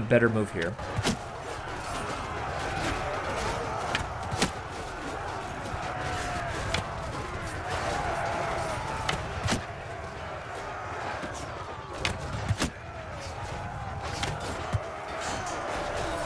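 Swords clash and armour clanks in a battle.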